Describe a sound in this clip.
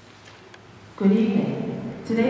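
A man begins singing a chant in a large, echoing hall.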